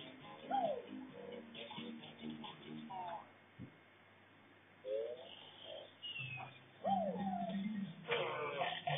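Cartoonish game sound effects chirp and warble in quick bursts.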